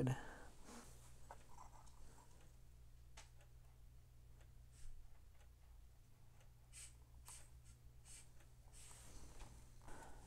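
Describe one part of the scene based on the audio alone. Small plastic parts click and snap as fingers work them apart.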